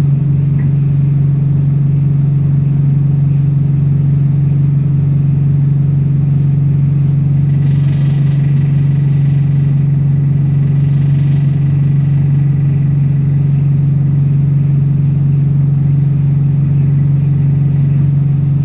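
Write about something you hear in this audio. A bus engine hums low and steady from inside the cabin.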